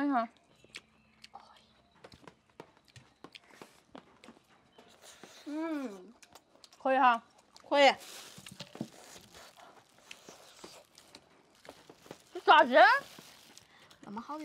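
A young woman chews and munches crunchy food close by.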